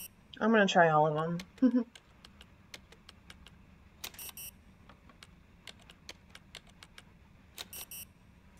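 Keypad buttons click with short electronic beeps in quick succession.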